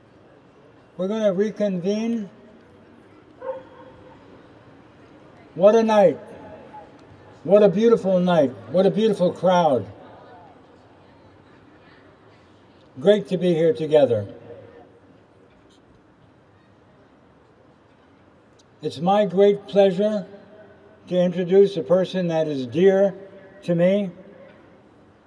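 An older man speaks slowly and solemnly through a microphone and loudspeakers outdoors.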